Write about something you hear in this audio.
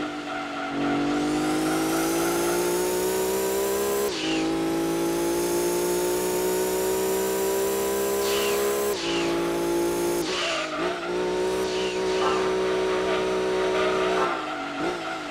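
A racing car engine revs high and climbs in pitch through the gears.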